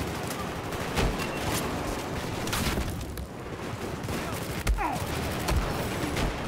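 Explosions boom with heavy thuds.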